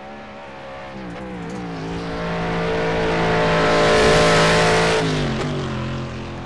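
A racing car engine shifts gears with sudden changes in pitch.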